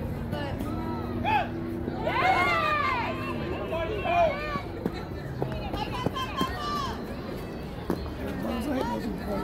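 Men and women shout and cheer outdoors across an open field.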